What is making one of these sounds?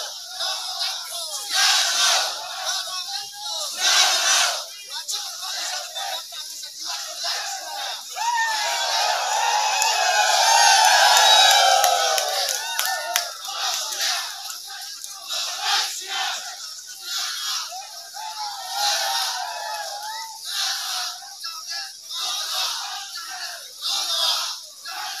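A large crowd of men and women chants and shouts loudly outdoors.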